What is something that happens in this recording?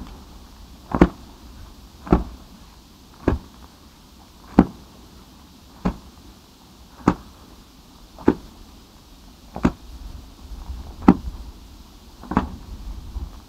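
A man beats at burning grass with steady, repeated thumps.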